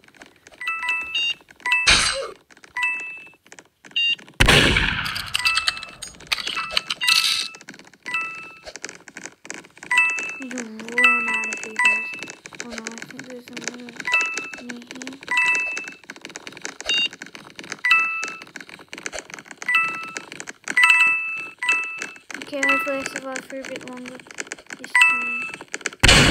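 A bright game chime dings again and again as points are earned.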